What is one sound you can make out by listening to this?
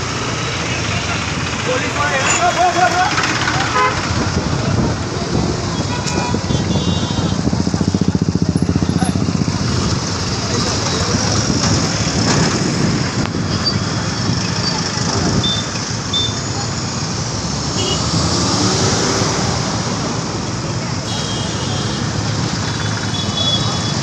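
Traffic rumbles along a busy road outdoors.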